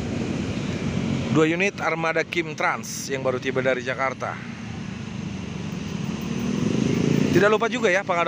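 Motorbikes buzz past nearby.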